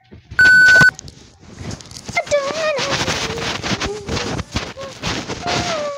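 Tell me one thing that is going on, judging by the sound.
Fabric rustles and rubs close against the microphone.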